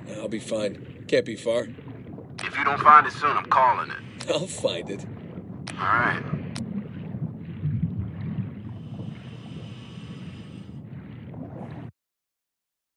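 A diver swims underwater with a low, muffled rumble.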